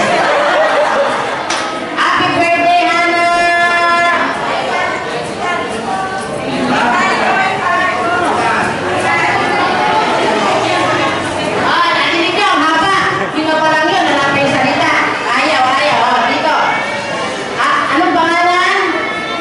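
Young children chatter and call out nearby.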